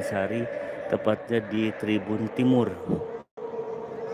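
A large crowd chants loudly in an open stadium.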